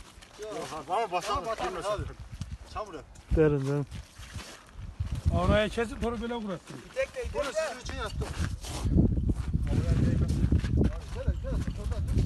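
A pole scrapes and knocks against ice.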